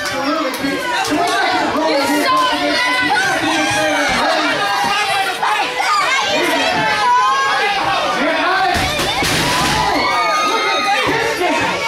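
A crowd of men and women shouts and cheers loudly in an echoing hall.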